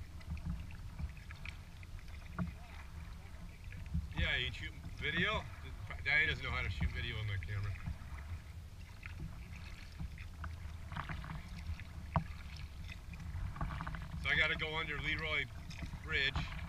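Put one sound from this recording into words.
Water laps gently against a kayak's hull.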